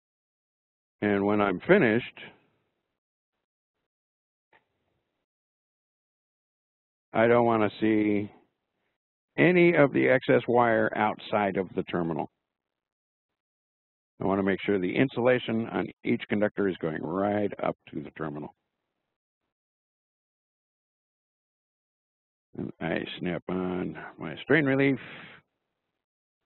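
A man speaks calmly in short bursts, heard through an online call.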